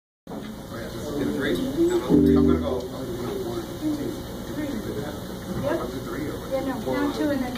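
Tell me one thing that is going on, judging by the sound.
A woman sings into a microphone.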